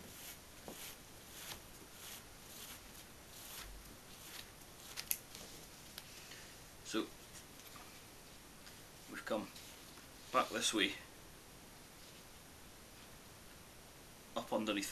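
Cord rustles and scrapes softly as it is pulled and wrapped.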